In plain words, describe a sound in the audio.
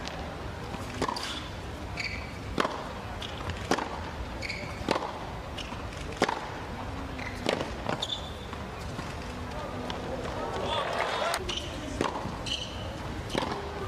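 Tennis shoes squeak sharply on a hard court.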